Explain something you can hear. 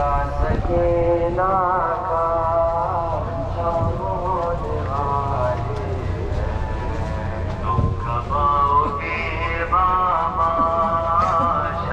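A man chants loudly in a long, wavering melody.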